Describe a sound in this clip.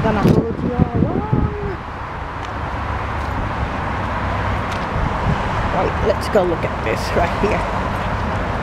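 A middle-aged woman speaks close by, outdoors.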